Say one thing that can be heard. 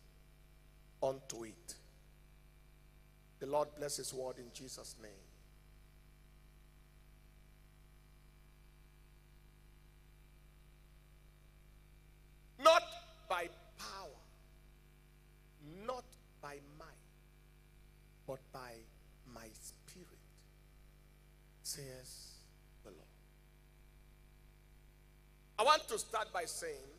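A man preaches with animation into a microphone, in bursts with pauses.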